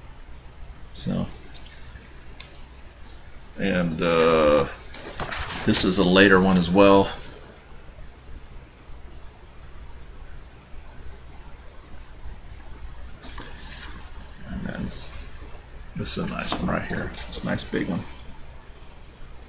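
A middle-aged man talks calmly and close by, with pauses.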